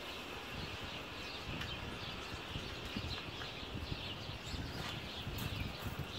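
Pine cones rustle and knock softly as they are arranged in a basket.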